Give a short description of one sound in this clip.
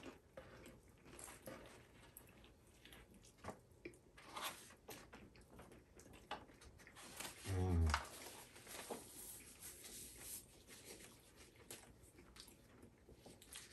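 A man chews food with soft smacking sounds.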